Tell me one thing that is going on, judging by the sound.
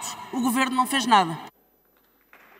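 A young woman speaks forcefully into a microphone.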